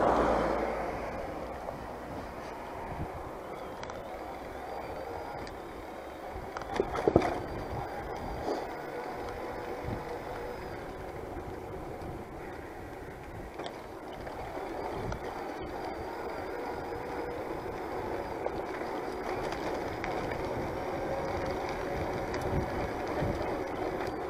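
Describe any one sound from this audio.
Bicycle tyres roll on a paved road.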